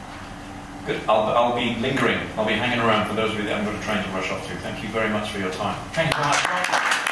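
A man speaks calmly into a microphone, heard through a loudspeaker in a large room.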